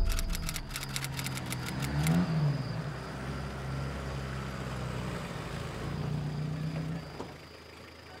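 A car engine hums and idles.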